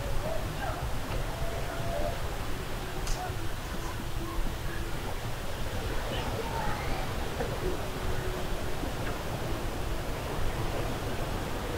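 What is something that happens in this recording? Footsteps climb stone steps outdoors.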